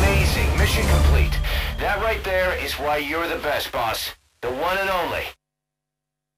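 Music plays loudly through loudspeakers in a large hall.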